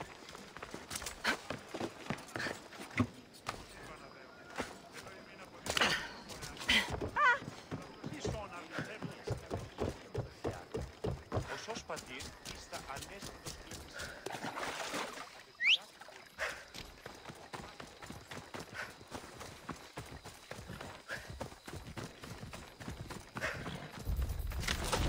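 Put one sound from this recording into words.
Footsteps run quickly over wooden boards and dry ground.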